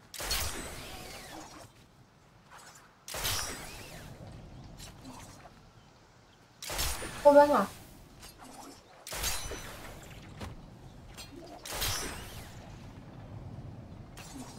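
Loud rushing whooshes burst out again and again, each fading over a second or two.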